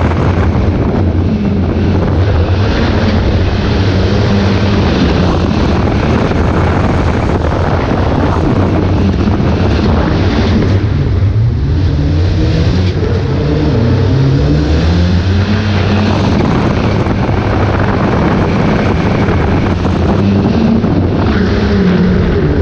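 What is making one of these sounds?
A race car engine roars loudly, revving up and down through the gears.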